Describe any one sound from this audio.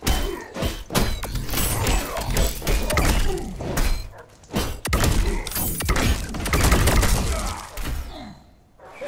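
Heavy punches and kicks land with sharp thuds and cracks.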